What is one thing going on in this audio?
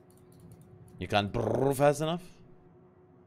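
A young man speaks closely into a microphone.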